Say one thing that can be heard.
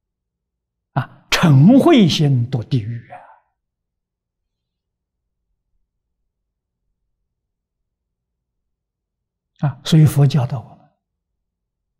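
An elderly man speaks calmly and slowly into a close microphone.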